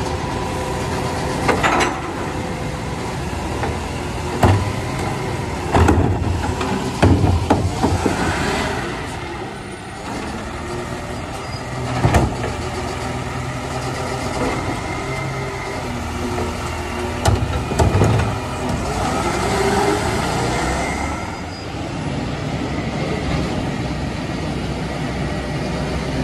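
A garbage truck engine rumbles and idles steadily nearby.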